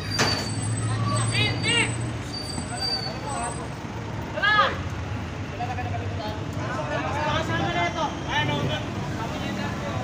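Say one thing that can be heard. Men talk nearby in raised voices.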